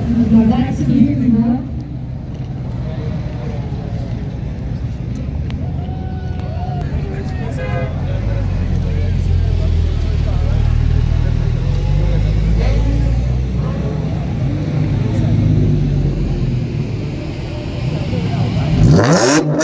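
A crowd of men chatter nearby outdoors.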